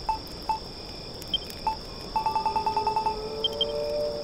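Short electronic blips tick quickly as menu selections move.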